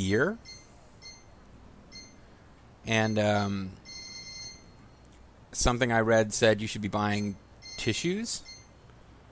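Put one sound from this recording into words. Short electronic menu blips chime again and again.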